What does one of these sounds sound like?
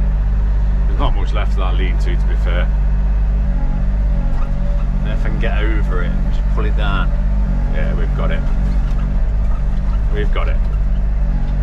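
A digger bucket scrapes and crunches into earth.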